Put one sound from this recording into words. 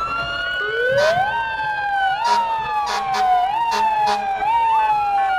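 Air horns blast in short bursts.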